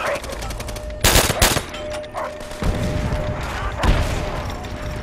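Gunshots crack loudly in short bursts.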